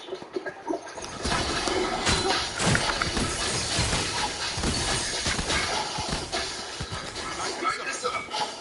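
Weapons fire and blasts burst out in quick succession.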